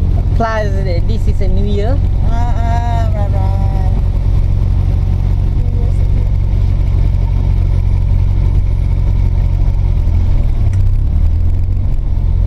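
A car engine hums steadily with a low rumble.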